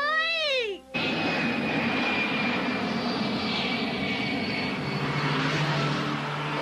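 A jet airplane roars steadily overhead.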